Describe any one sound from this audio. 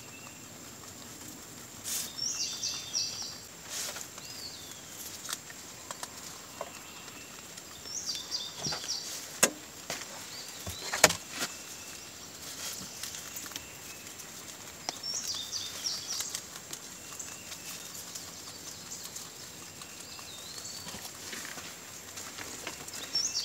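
Rabbits munch and crunch on fresh leaves and grass.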